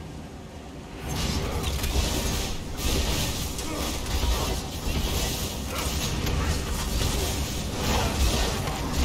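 Magic blasts and weapon hits crash and crackle in a busy fight.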